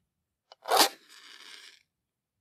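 A struck match flares up with a soft hiss.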